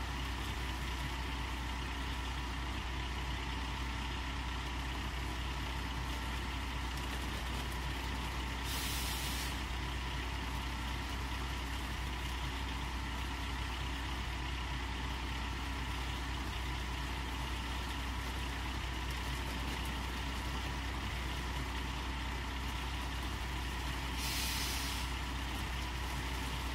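A diesel excavator engine rumbles steadily at idle.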